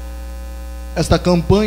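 A man speaks loudly through a microphone and loudspeakers in an echoing hall.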